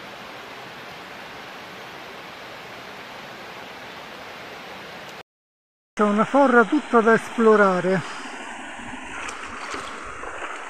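A shallow stream flows and trickles over stones.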